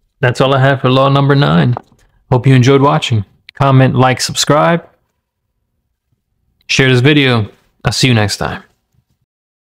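A man speaks calmly and close up.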